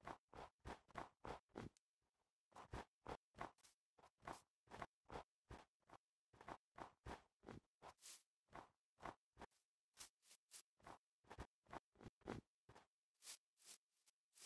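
Footsteps crunch quickly and steadily through snow.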